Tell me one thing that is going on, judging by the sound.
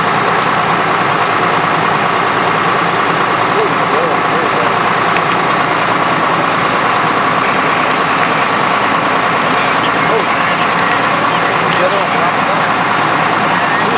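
A fire engine's pump engine drones steadily.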